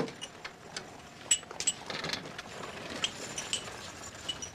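Glass clinks sharply close by.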